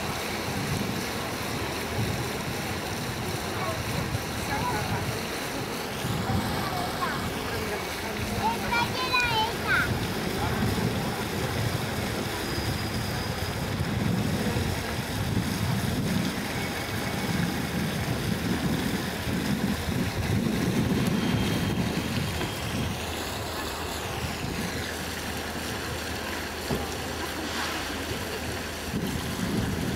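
Fountain water splashes steadily.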